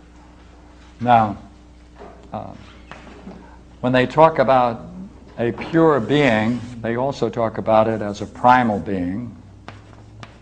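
An elderly man speaks calmly, as if lecturing.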